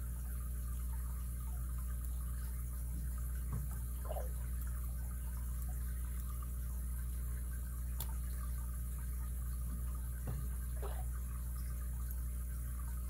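Small metal picks click and scrape softly inside a padlock.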